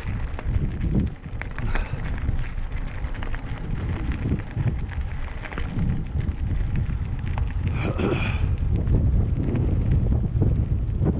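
Tyres crunch and rattle over a dirt trail.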